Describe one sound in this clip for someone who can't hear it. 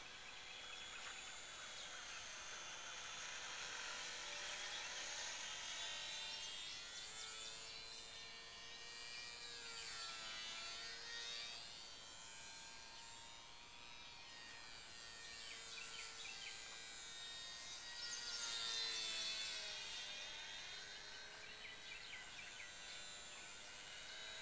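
A model airplane engine buzzes high overhead, rising and falling in pitch as it passes.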